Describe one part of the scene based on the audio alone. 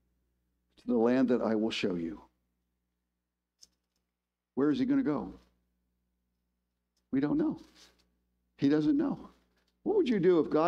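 A middle-aged man speaks calmly and clearly into a microphone, in short phrases with pauses.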